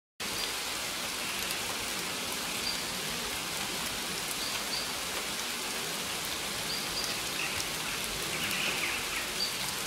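A waterfall rushes and splashes steadily into a pool.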